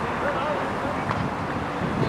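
Something splashes heavily into water.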